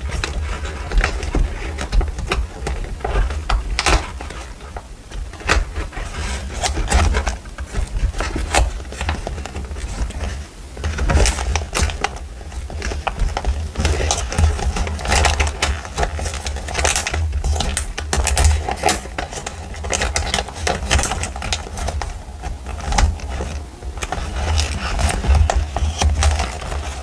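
Paper cards rustle and flick as fingers leaf through them close up.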